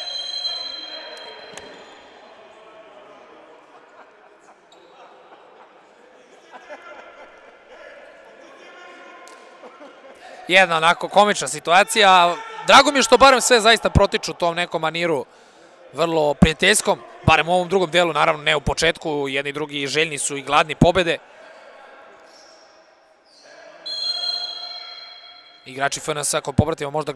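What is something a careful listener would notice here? A ball is kicked with dull thumps in an echoing hall.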